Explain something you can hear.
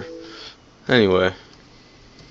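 A laptop plays a short startup chime.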